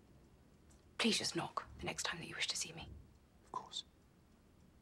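A woman speaks urgently up close.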